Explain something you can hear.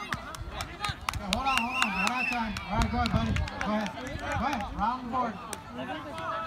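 A crowd of young people cheers and laughs outdoors.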